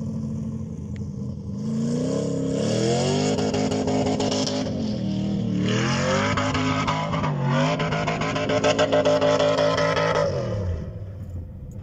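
A four-wheel-drive SUV engine revs hard as the vehicle climbs a sand dune.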